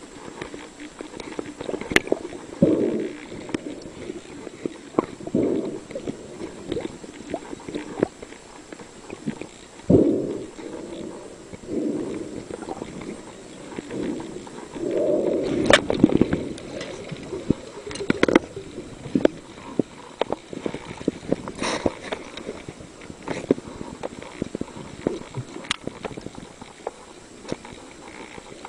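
Water churns and bubbles around a diver, heard underwater.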